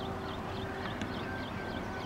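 A cricket bat strikes a ball in the distance.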